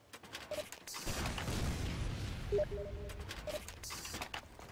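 A rocket explodes nearby with a deep, rumbling boom.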